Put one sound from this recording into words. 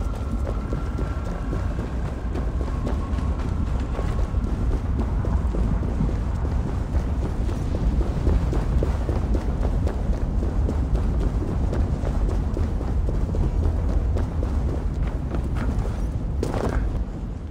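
Heavy footsteps run quickly over stone.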